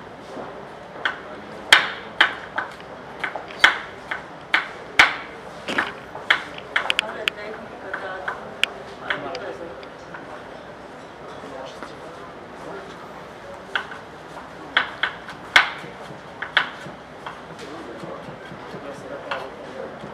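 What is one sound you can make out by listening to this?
A knife taps sharply on a wooden chopping board as vegetables are cut.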